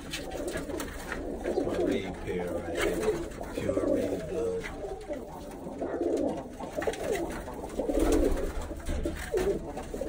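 Pigeons coo in low, throaty bursts close by.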